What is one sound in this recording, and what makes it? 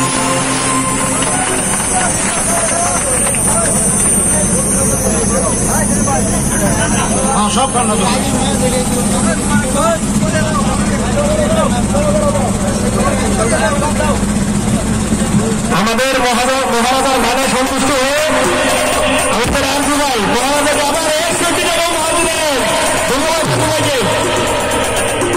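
A crowd of men and women chatters loudly close by, outdoors.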